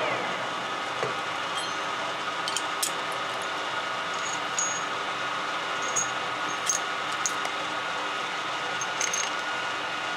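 Metal tools clink against a lathe chuck.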